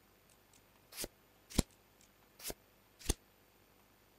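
Short, sharp clicks sound a few times.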